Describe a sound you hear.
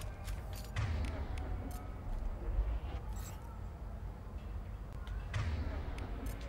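Gunshots crack with a ringing echo.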